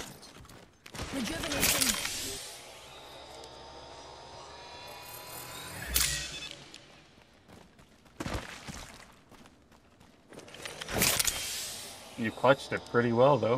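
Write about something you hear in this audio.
A game character injects a syringe with a sharp mechanical hiss and click.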